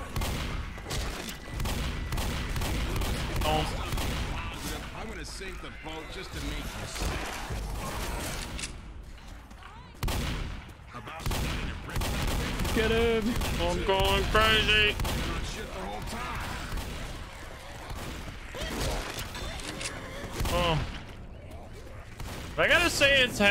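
Shotguns fire in loud booming blasts.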